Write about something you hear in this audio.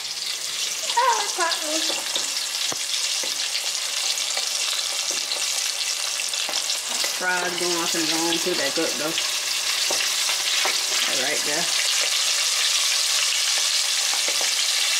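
Hot oil sizzles and crackles steadily in a pot.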